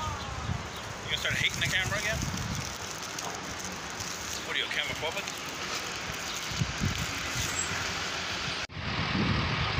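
A young man talks casually close by, outdoors.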